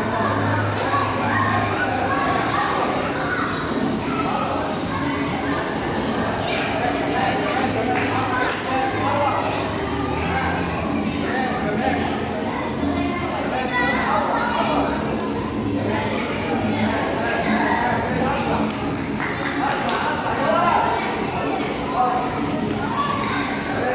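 Music with a steady beat plays loudly in a large echoing hall.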